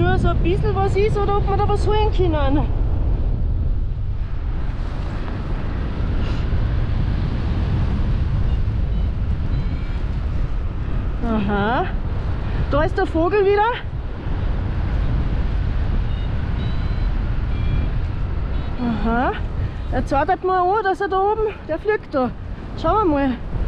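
Wind rushes loudly and steadily past, outdoors in the open air.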